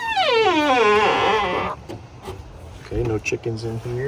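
A wooden hatch knocks as a man opens it.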